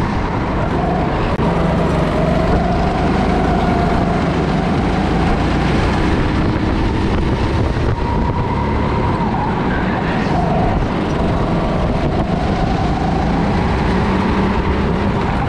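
Another go-kart engine whines nearby.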